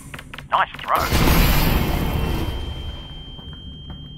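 An explosion booms with a roar and slowly dies away.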